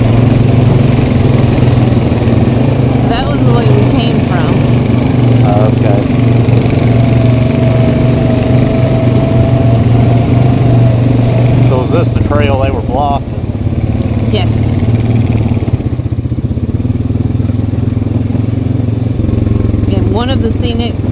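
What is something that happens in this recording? An all-terrain vehicle engine hums steadily close by.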